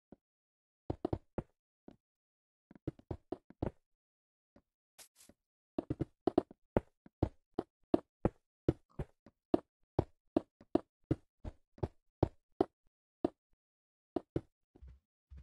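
Blocks are set down with quick, soft thuds in a fast, uneven rhythm.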